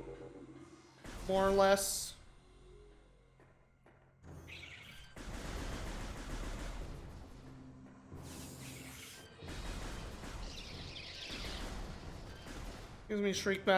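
Blasts and explosions boom from a game.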